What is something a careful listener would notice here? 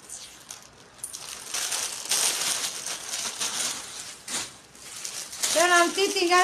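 Plastic wrapping rustles and crinkles in a woman's hands.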